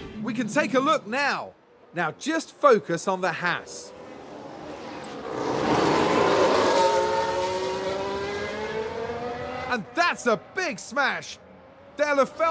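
Racing car engines rev and whine, rising and falling quickly.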